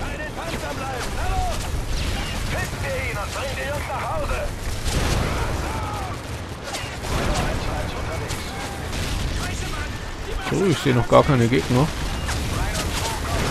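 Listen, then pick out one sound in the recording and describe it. Distant explosions and battle noise rumble steadily outdoors.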